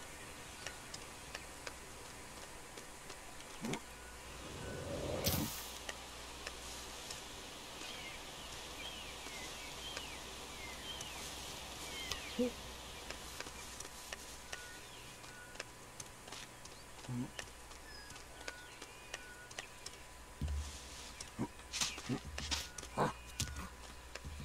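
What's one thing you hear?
Footsteps patter softly through grass and dirt.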